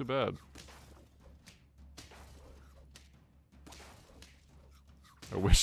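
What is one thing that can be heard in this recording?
Short video game sound effects pop and thud during a battle.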